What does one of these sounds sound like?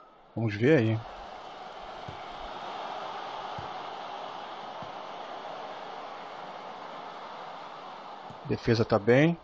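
A stadium crowd roars and murmurs, swelling and fading.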